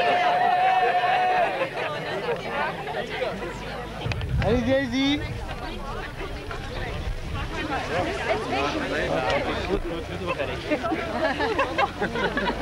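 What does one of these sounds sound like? A large crowd of men and women chatter outdoors.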